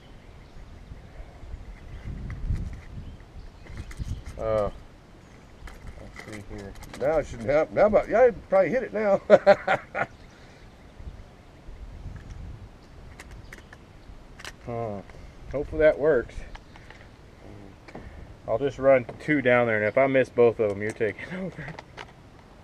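Metal parts of a rifle click and clack as a young man handles it.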